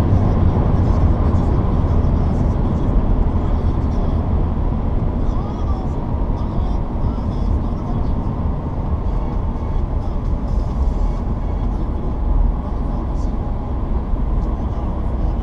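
A car engine hums steadily with a deep rumble.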